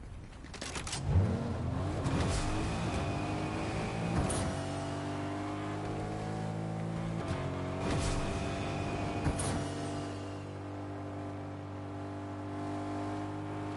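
A truck engine starts up and runs with a steady drone, revving up and down.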